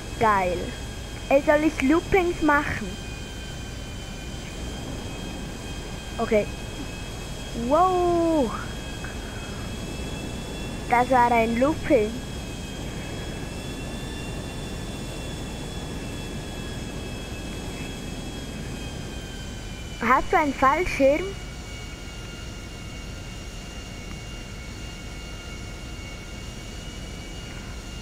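Jet engines hum and whine steadily.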